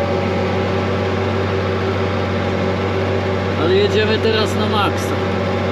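A diesel tractor engine drones under load, heard from inside the cab.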